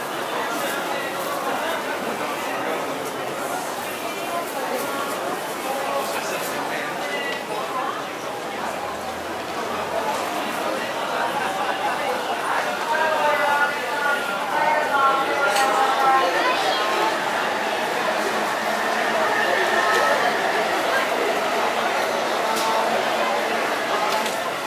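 A crowd of men and women chatters all around, louder inside an echoing hall.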